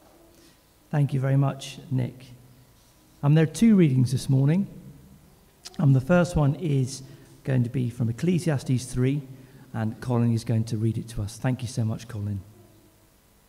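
A man reads aloud calmly into a microphone in a room with a slight echo.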